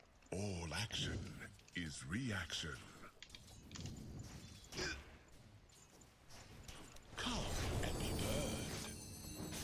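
Magic blasts and clashing blows crackle and whoosh in a video game battle.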